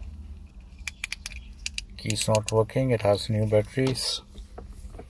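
Keys jingle and click close by.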